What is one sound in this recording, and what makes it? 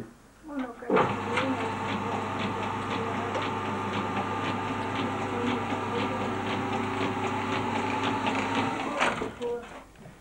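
A spinning machine whirs and rattles steadily.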